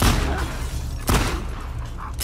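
A gunshot cracks once.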